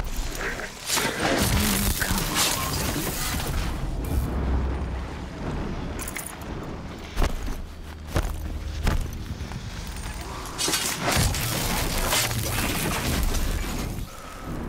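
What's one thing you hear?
A mechanical creature clanks and roars during a fight.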